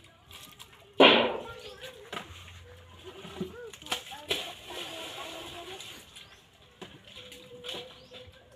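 Water splashes and pours into a metal basin.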